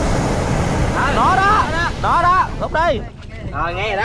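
Young men talk with excitement close by.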